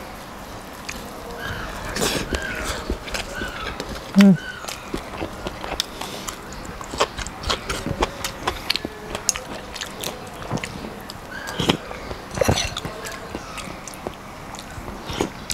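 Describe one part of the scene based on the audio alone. A man mixes rice with his fingers on a plate.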